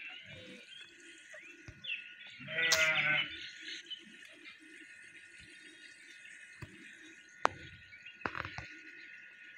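Ducks splash and flap their wings in shallow water.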